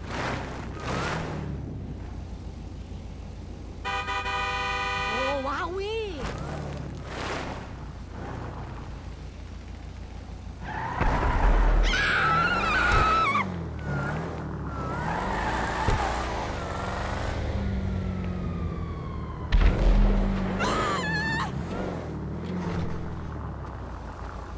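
A car engine hums and revs as a car drives.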